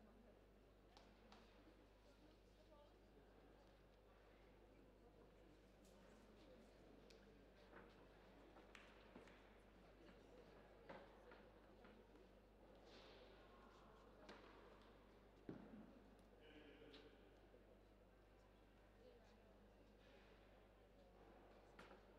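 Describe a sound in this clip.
A crowd murmurs softly in a large indoor hall.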